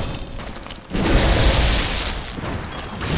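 Electricity crackles and bursts loudly.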